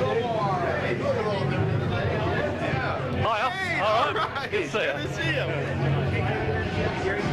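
A crowd of people chatter loudly in an echoing room.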